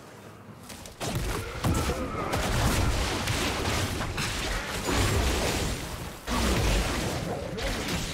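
Magic spells burst and crackle in a game battle.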